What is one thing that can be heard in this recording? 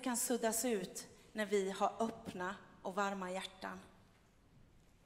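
A woman speaks with animation through a microphone in a large hall.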